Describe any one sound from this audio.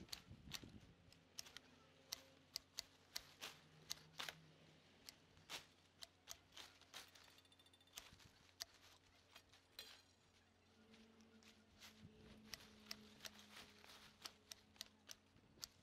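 Garden loppers snip through vine stems with sharp clicks.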